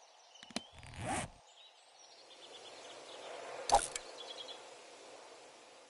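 Game menu sounds click softly as items are selected.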